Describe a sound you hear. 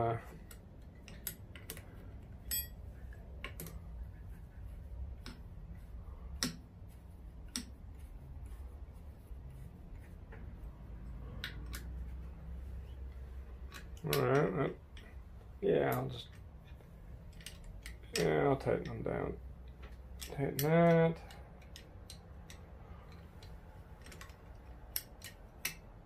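Metal parts clink and tap lightly.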